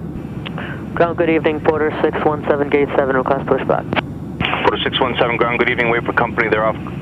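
A young man speaks calmly through a radio headset microphone.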